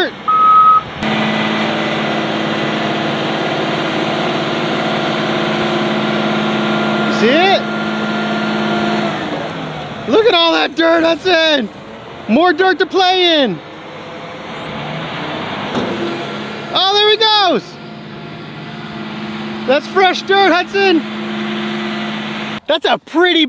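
A heavy truck engine rumbles steadily close by.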